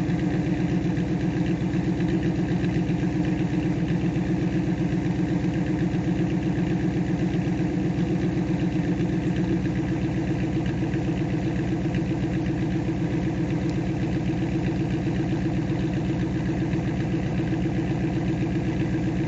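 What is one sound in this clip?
A car engine idles with a deep, steady rumble from the exhaust close by.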